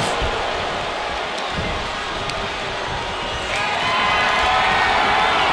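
A large crowd cheers and roars steadily, growing louder partway through.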